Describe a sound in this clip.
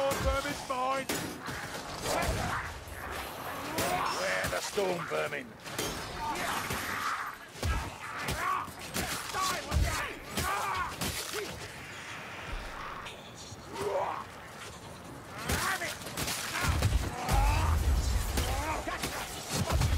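Blades slash and thud in quick bursts.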